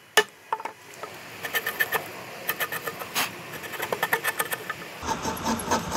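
A chisel pares wood by hand.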